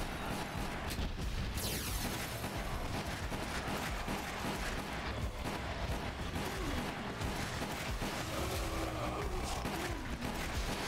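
Gunshots bang sharply, one after another.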